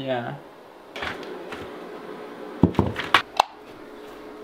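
A plastic bucket knocks and rattles as it is set down.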